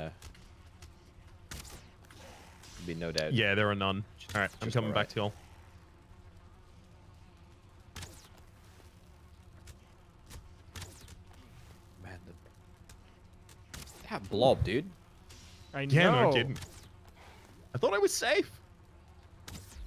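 A bowstring twangs as arrows are loosed, again and again.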